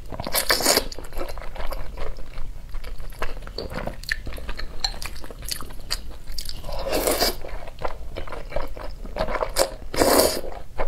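A young woman chews food wetly, close to a microphone.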